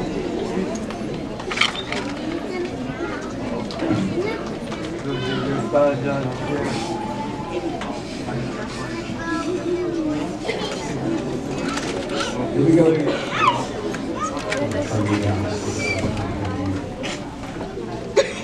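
Children and adults chatter and murmur in a large echoing hall.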